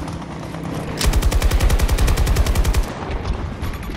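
A machine gun fires rapid bursts.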